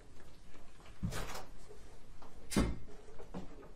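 Papers rustle and thump as they are gathered up.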